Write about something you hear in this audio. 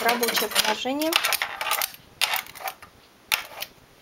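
A metal comb clicks against the machine's needles.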